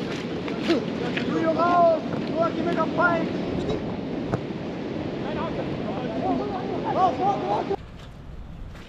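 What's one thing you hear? Wind rushes across the microphone outdoors.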